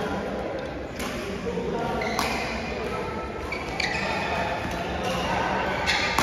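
Rackets strike a shuttlecock with sharp pops in an echoing indoor hall.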